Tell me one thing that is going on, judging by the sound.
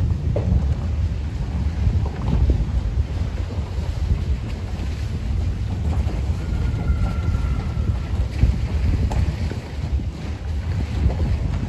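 A vehicle rumbles and bumps along a rough gravel track.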